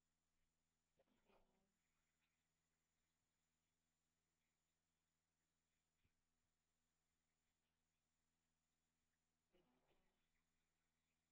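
A young man speaks softly into a microphone, with long pauses.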